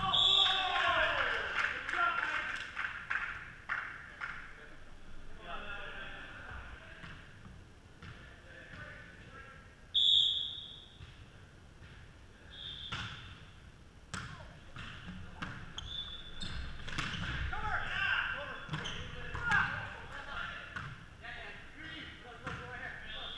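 Young men call out and shout during play.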